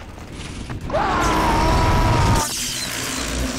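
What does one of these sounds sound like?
An electric zap crackles loudly.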